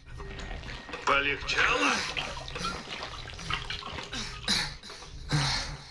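Liquid splashes as it is poured from a bottle.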